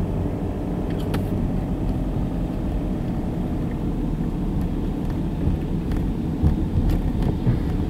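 Tyres roll over pavement.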